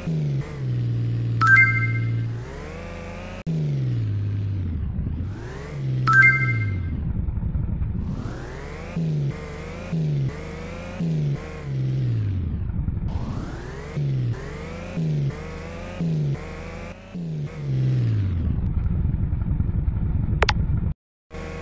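A car engine revs up and down over and over.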